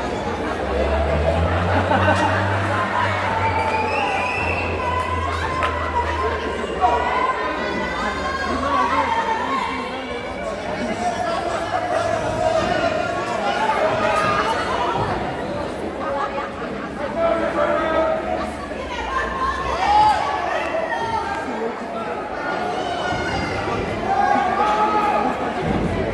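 A crowd of spectators chatters and cheers in a large echoing hall.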